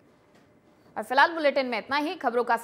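A woman speaks clearly and briskly into a microphone, like a newsreader.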